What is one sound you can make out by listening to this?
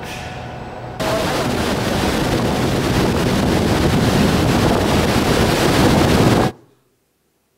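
A waterfall roars loudly and steadily.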